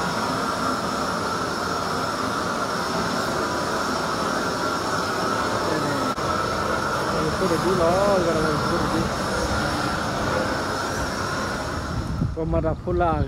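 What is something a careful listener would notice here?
A hose sprays water with a steady hiss.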